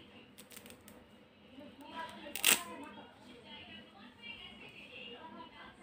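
Soft plush toys rustle and brush together as hands handle them.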